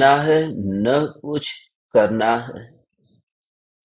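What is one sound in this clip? A man speaks slowly and calmly into a close microphone.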